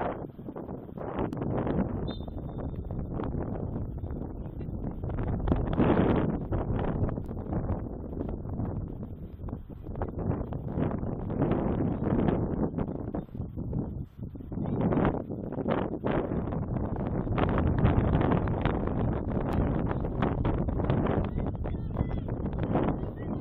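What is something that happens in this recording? Players call out to each other across an open field, heard from a distance.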